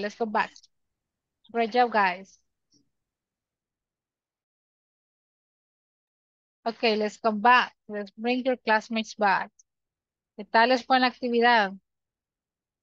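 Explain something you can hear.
A young woman speaks calmly through an online call, in short bursts with pauses.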